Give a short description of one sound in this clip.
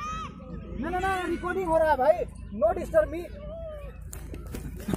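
A young man shouts with animation outdoors.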